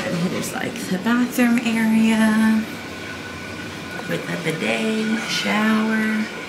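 A young woman speaks close by in a lively, sing-song voice.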